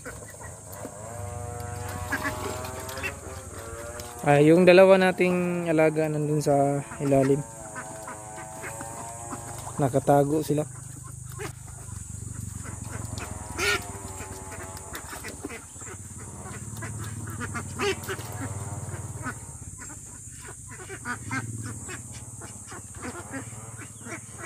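Ducks quack close by.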